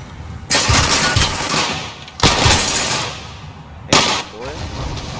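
Gunfire bursts loudly in rapid volleys.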